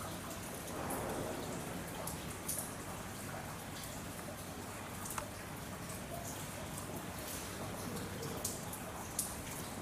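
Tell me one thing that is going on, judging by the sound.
Young apes thump and scuffle softly as they wrestle on a hard floor behind glass.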